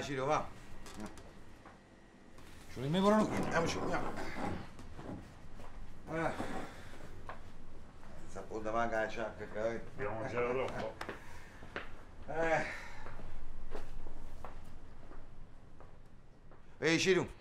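Men talk calmly and with animation nearby.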